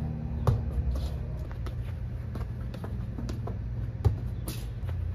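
A ball thuds sharply as a foot kicks it.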